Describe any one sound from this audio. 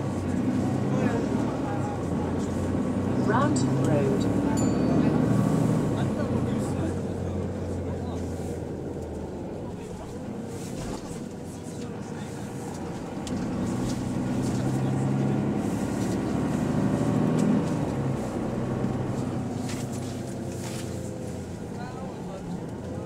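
Several men talk loudly nearby, with agitated voices.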